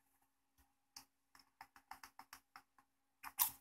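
Plastic parts of a light bulb click and tap softly as hands handle them.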